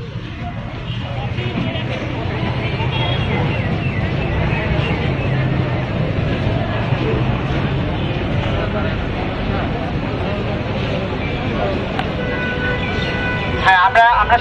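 A crowd of young men and women murmurs and chatters outdoors.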